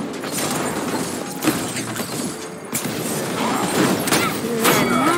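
A gun fires sharp shots in bursts.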